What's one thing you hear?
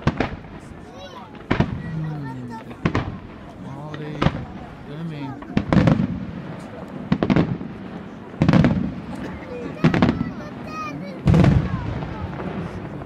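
Fireworks boom and bang loudly, echoing across open country.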